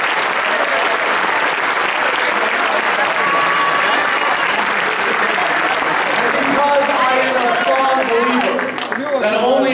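A large crowd cheers and chatters loudly in a big echoing hall.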